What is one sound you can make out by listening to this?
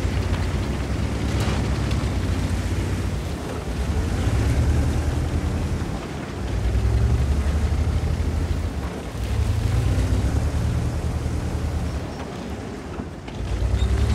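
A tank engine rumbles loudly, surging and easing.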